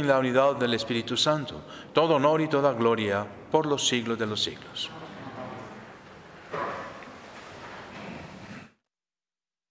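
A middle-aged man chants calmly through a microphone.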